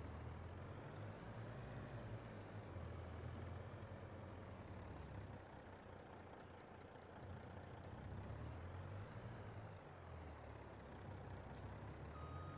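Loaded trailers rattle over a bumpy dirt road.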